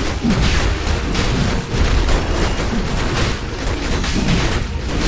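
Magic spells crackle and boom in a fast, noisy fight.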